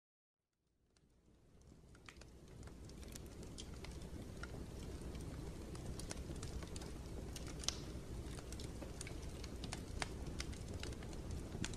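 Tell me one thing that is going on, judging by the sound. A wood fire crackles and pops steadily, fading in at the start.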